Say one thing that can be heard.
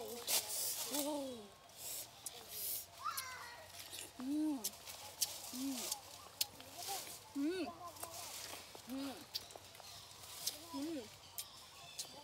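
Leaves rustle as a young woman pulls fruit from a branch.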